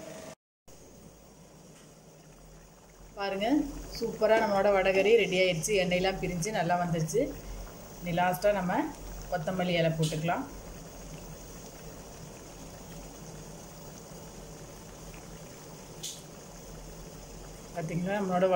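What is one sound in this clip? A thick sauce bubbles and simmers in a pan.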